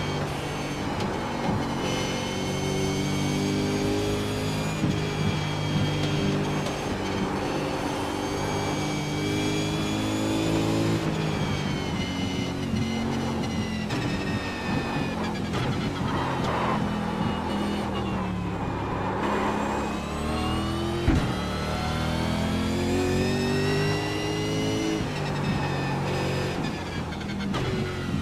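A racing car engine roars loudly, rising and falling in pitch as it shifts gears.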